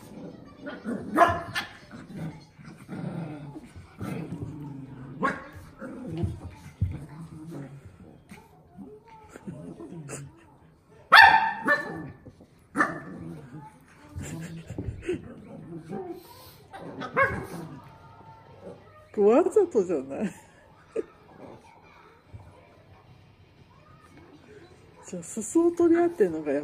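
Small dogs growl and yap playfully.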